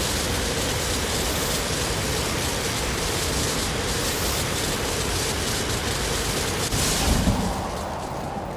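Electric sparks crackle and fizz loudly.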